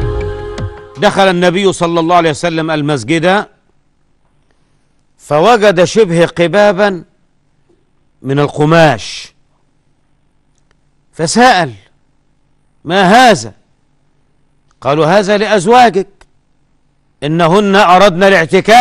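An elderly man speaks slowly and with emphasis into a microphone, pausing between phrases.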